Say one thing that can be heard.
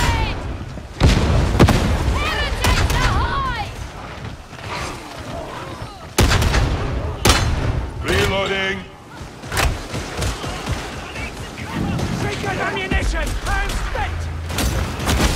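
Gunshots fire in sharp bursts.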